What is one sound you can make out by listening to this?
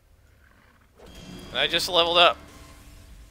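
A magic spell crackles and rings out with a bright whoosh.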